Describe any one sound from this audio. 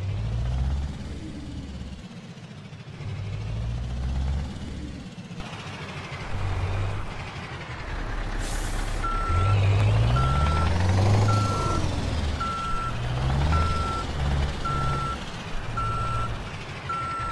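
A truck engine rumbles low and changes pitch as the truck manoeuvres.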